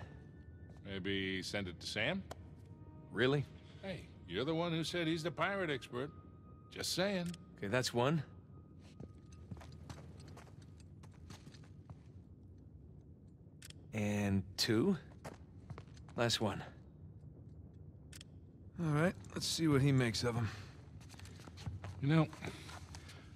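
An older man speaks in a gruff, joking voice, close by.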